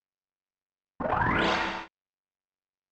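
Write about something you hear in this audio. A short electronic whoosh with a sliding tone plays.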